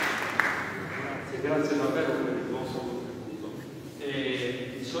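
A man speaks into a microphone over a loudspeaker, echoing in the hall.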